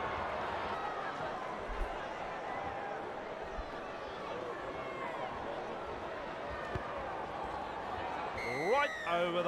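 A large crowd murmurs steadily.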